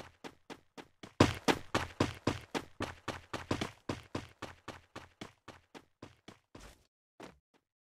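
Footsteps thud quickly across the ground.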